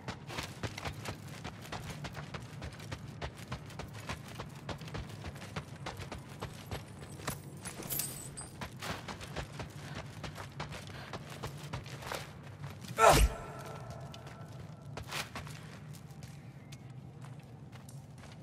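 Footsteps thud and scrape on stone.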